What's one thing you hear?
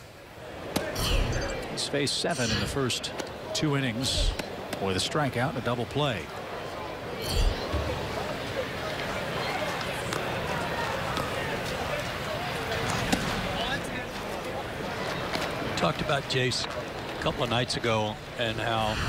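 A large outdoor crowd murmurs steadily.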